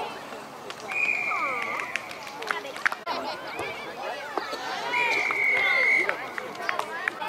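A referee blows a whistle in short sharp blasts.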